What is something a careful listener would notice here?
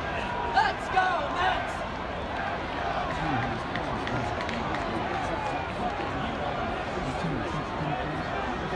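A stadium crowd murmurs and chatters all around.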